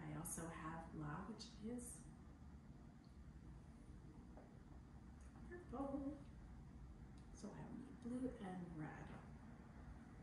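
A young woman talks calmly and clearly nearby.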